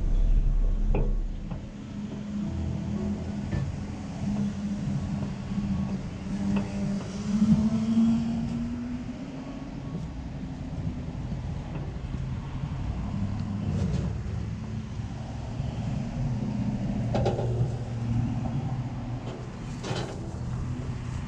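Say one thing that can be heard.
A man knocks pots and things about now and then.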